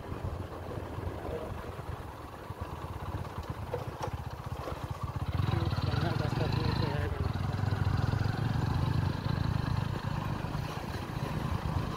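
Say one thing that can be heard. A motorbike engine hums steadily while riding along.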